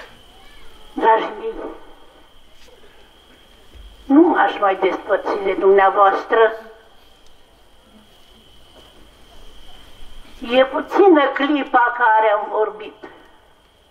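A man chants loudly into a microphone through a loudspeaker.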